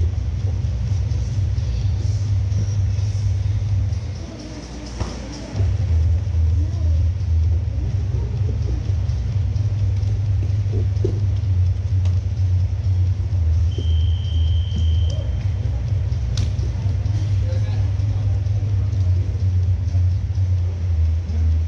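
Bodies thump and shuffle on padded mats.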